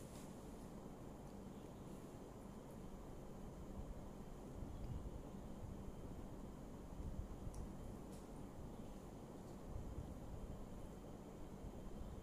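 A fork scrapes on a plate.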